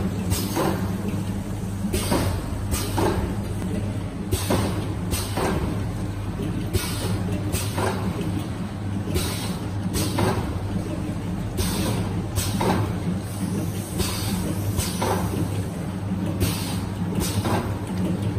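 A machine clacks in a steady, repeating rhythm.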